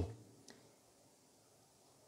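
A man sips water from a glass.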